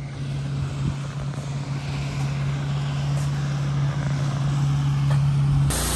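A motorboat engine drones far off across the water.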